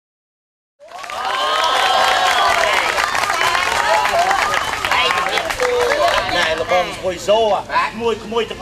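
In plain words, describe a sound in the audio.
A crowd claps along.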